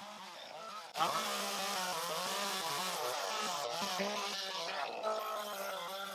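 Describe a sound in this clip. A small engine saw runs loudly nearby.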